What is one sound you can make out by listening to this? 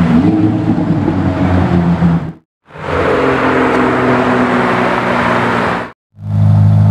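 A sports car engine roars as the car accelerates away.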